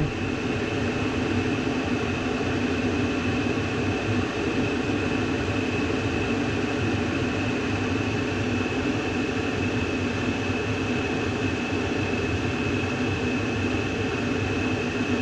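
A furnace blower motor hums and whirs steadily nearby.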